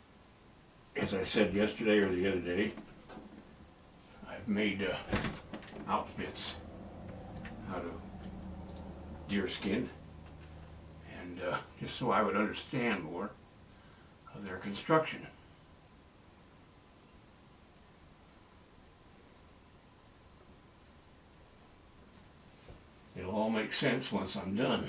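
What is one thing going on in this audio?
A middle-aged man talks calmly, close by, in bursts with pauses.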